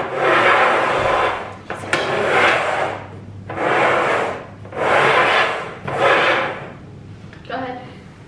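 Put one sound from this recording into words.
A young woman drums her hands on upturned plastic bowls.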